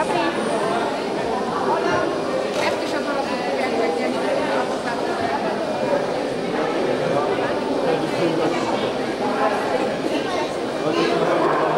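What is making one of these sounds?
A crowd of adults chatters steadily in a large echoing hall.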